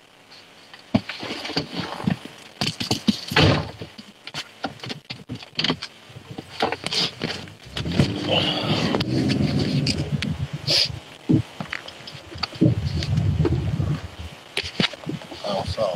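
A phone rubs and knocks as it is handled up close.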